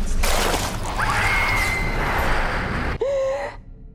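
A woman screams in anguish.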